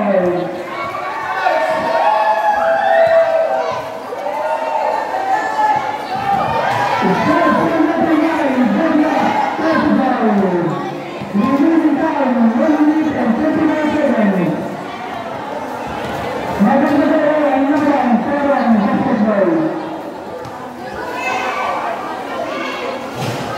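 A crowd of spectators shouts and cheers loudly outdoors.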